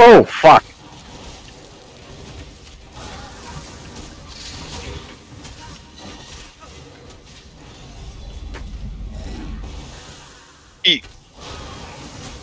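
Magic spells blast and crackle in a fantasy battle.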